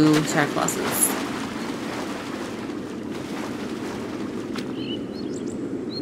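Footsteps splash softly in shallow water.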